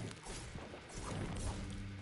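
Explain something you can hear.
A pickaxe strikes a wall with sharp knocks.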